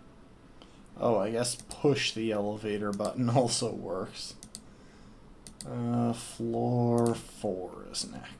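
A man speaks calmly and close into a microphone.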